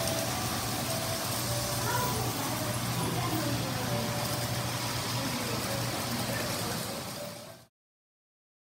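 A model train rumbles and clatters along its track.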